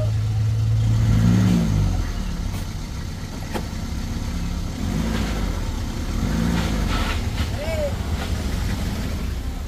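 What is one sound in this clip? A motorbike engine revs nearby.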